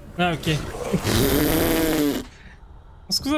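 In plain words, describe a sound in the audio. A large creature roars loudly.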